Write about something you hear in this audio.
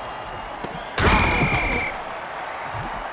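A heavy crash and crunch of bodies colliding.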